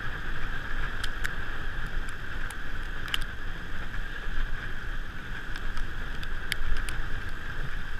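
A bicycle chain and frame rattle and click over bumps.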